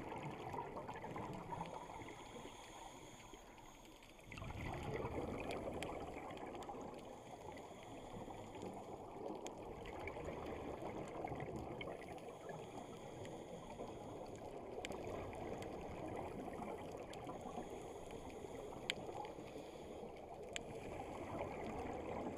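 A diver's regulator hisses underwater.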